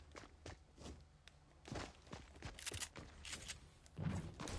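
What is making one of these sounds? Footsteps tap quickly across a wooden floor.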